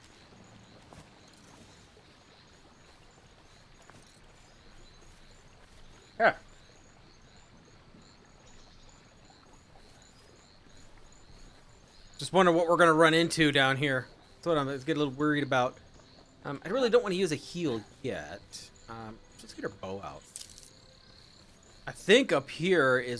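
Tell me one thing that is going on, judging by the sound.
Footsteps pad softly through grass and earth.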